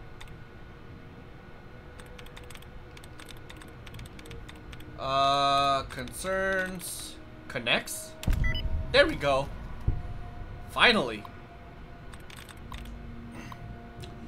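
Keys on a computer terminal click in short bursts.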